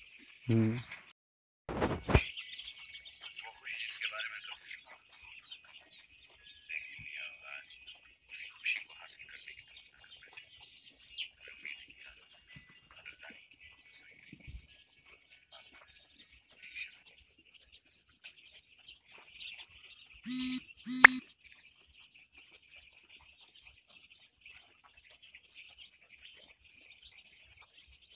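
Many chicks cheep in a steady high chorus.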